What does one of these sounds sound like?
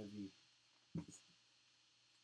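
Hard plastic card cases click against each other.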